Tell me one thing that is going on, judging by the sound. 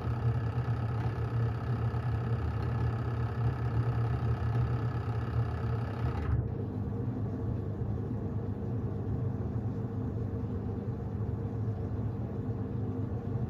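A washing machine hums steadily as its drum turns.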